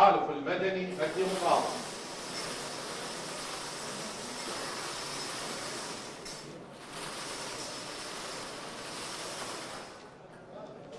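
Balls rattle in a turning lottery drum.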